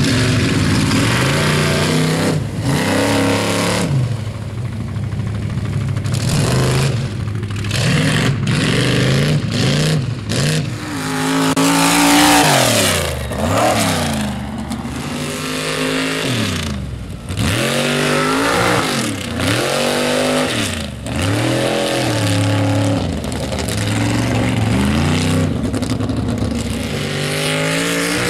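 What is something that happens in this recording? Mud splatters and sprays from spinning tyres.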